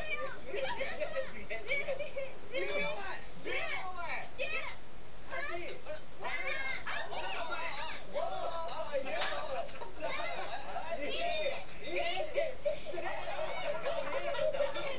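A television plays in the room.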